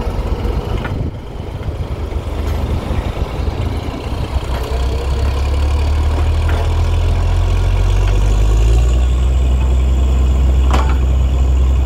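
Metal clanks sharply on the drilling rig now and then.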